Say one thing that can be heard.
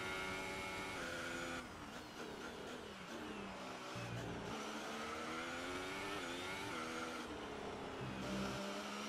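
Gears shift with quick changes in the engine's pitch.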